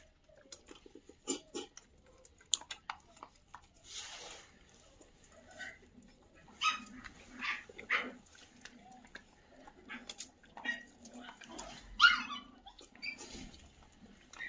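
A dog eats noisily from a metal bowl, crunching and clinking.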